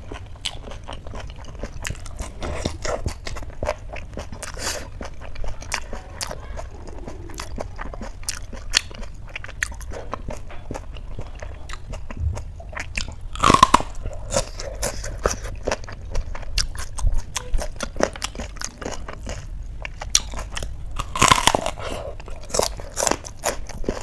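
A woman chews food noisily and close up.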